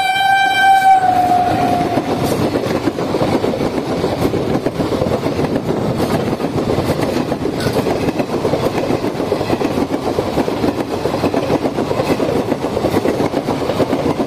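A passing train rumbles and clatters loudly along the rails.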